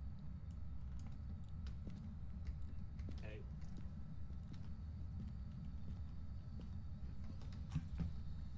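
Footsteps creak slowly across a wooden floor.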